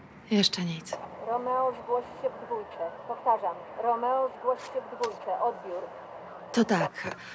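A man's voice speaks through a crackly radio.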